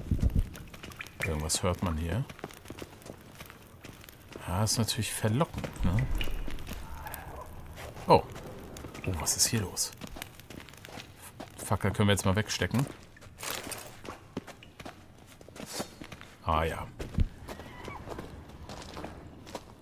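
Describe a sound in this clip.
Footsteps crunch on a rocky floor.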